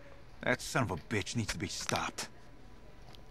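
A middle-aged man speaks gruffly and with agitation, close by.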